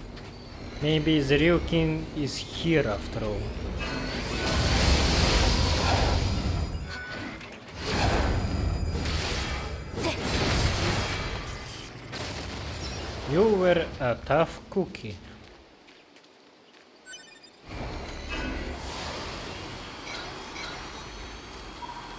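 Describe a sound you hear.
Blades swish and clang in quick strikes.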